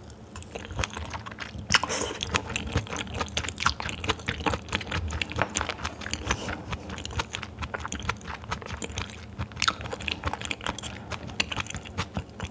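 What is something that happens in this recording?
A young woman chews raw beef with wet, squelching sounds close to a microphone.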